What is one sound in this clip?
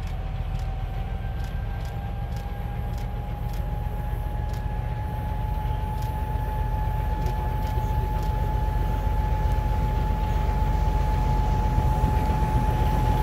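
A locomotive engine hums with a steady tone.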